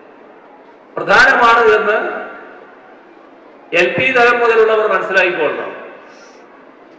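An older man speaks with emphasis through a microphone and loudspeakers, echoing widely.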